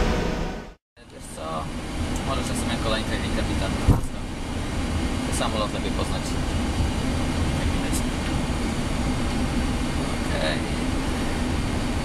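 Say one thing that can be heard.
Jet engines hum and rumble steadily, heard from inside a cockpit.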